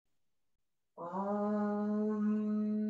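A woman chants a long, steady note.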